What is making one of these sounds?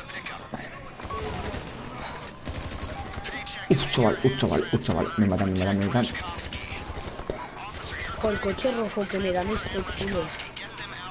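A rifle fires bursts of rapid shots.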